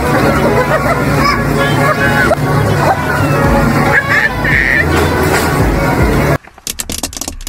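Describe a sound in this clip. Children shout and laugh.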